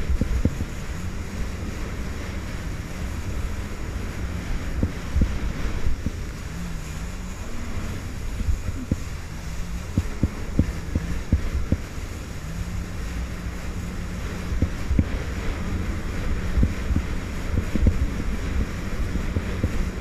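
A jet ski engine drones steadily up close.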